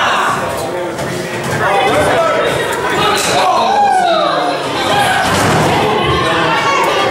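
A crowd of people chatters and shouts in an echoing hall.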